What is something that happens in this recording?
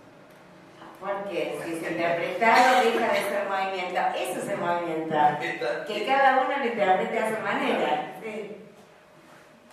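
A woman talks with animation into a microphone, heard through loudspeakers in a hall.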